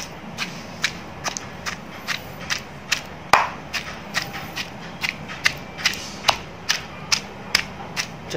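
A wooden pestle pounds food in a stone mortar with a steady rhythm of wet thuds.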